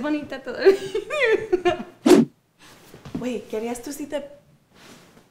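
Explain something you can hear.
A young woman talks playfully, close by.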